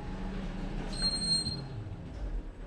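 An elevator button beeps when pressed.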